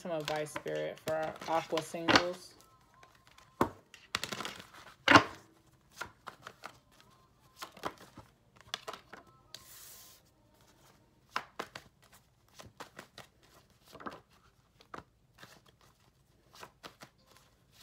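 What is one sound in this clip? Paper banknotes rustle and flick as they are counted.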